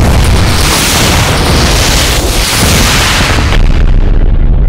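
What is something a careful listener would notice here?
Guns fire rapidly in a game.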